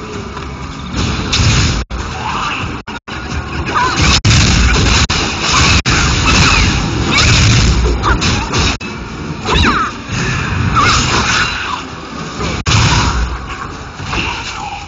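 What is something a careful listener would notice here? Weapons clash and strike in a loud fight.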